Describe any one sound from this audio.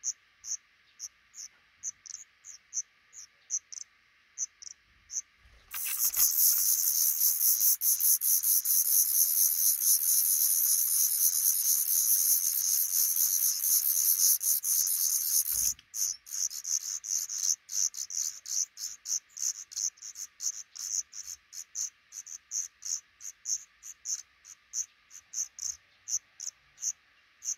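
Baby birds peep softly in short, regular calls.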